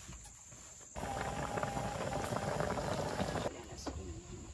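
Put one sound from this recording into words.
A pot of thick broth bubbles and boils.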